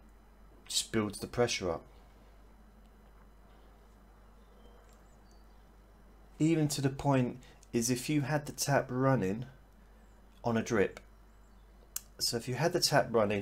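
A middle-aged man talks calmly and closely into a microphone, pausing between phrases.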